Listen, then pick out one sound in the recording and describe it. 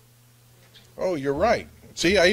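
A middle-aged man speaks slowly and deliberately through a microphone.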